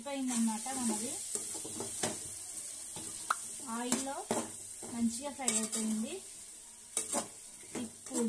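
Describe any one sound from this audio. A metal spoon scrapes and clanks against a metal pot while stirring.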